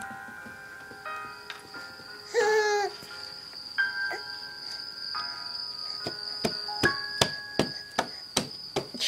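Cartoon music with tinkling tones plays from a small laptop speaker.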